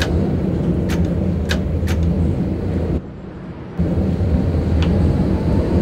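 A tram's wheels click over rail joints.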